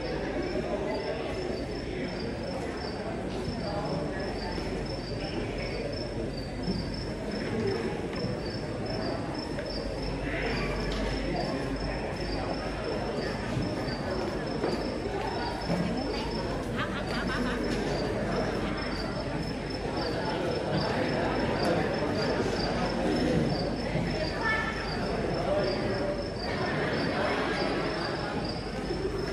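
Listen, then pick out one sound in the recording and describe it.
A man sings into a microphone in a large echoing hall.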